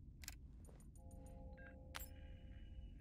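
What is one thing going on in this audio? An electronic wrist device beeps.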